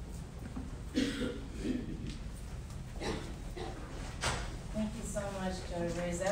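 A woman speaks into a microphone.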